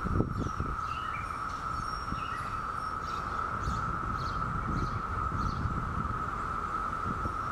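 A bumblebee buzzes around flowers.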